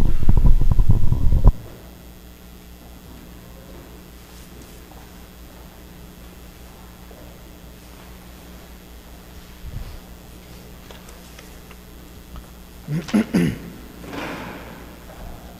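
A man chants aloud, echoing through a large hall.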